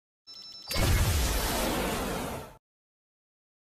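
A loud rushing whoosh sweeps past.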